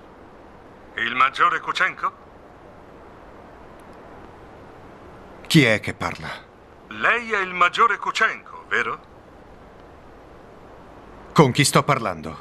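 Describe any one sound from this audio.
A man speaks tensely and quietly into a telephone, close by.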